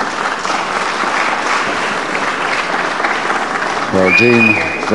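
A crowd murmurs and cheers in a large hall.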